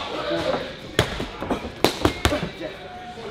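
Boxing gloves smack sharply against punch mitts.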